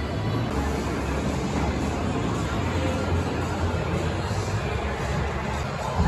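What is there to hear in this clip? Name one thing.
Arcade machines buzz and chime in a large, noisy hall.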